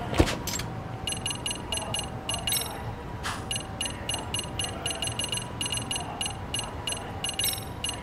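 A game menu ticks with quick, repeated clicks as the selection moves.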